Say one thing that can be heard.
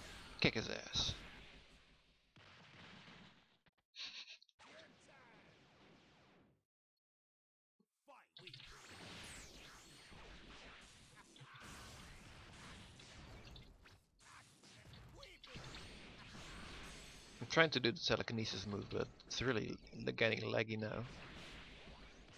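An energy blast whooshes and bursts.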